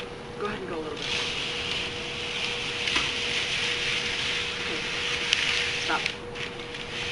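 Paper rustles and crinkles as it is unfolded.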